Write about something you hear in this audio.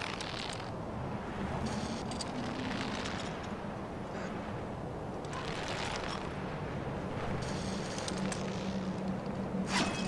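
A rope whirs and creaks as a climber slides down it.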